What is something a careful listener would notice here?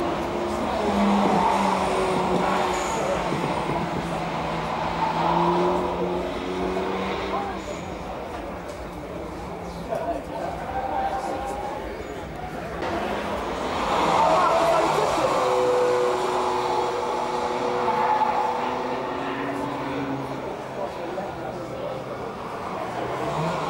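A car engine revs hard and its tone rises and falls.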